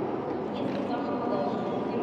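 Suitcase wheels roll across a hard floor.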